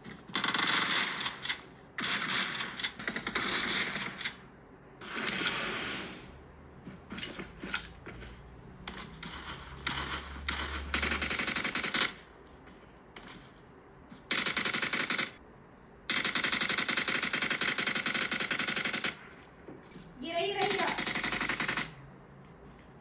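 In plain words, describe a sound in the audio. Gunfire and game effects play in bursts from a phone speaker.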